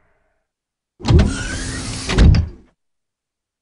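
A heavy metal door slides with a loud rumble.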